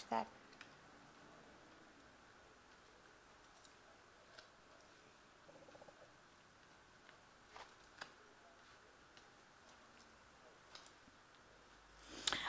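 Playing cards are laid and slid softly on a table.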